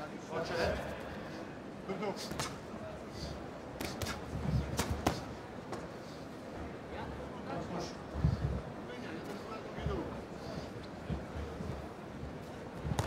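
Punches thud against a boxer's body and gloves.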